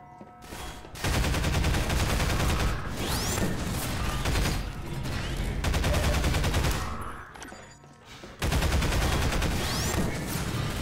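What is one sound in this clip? A gun fires rapid bursts of shots, echoing in an enclosed space.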